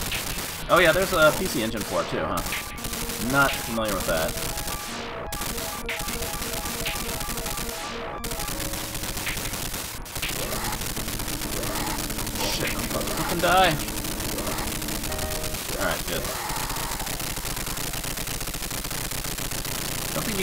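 Arcade game shots and explosions crackle rapidly.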